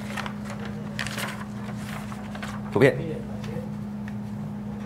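Paper rustles as pages are turned close by.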